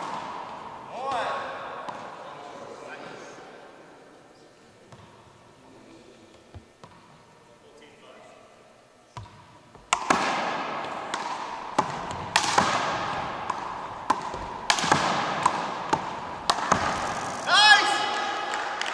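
Sneakers squeak sharply in a large echoing gym.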